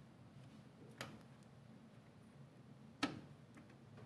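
Small metal parts click sharply against a computer case.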